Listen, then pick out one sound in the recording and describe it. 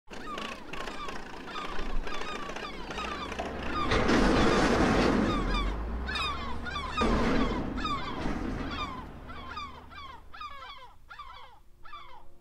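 Many gulls call and cry overhead.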